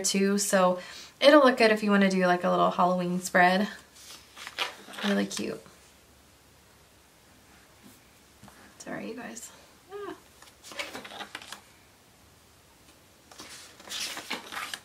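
Paper pages rustle and flip as they are turned.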